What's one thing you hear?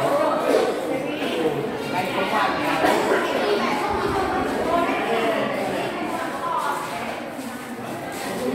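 A crowd of children and adults chatters nearby.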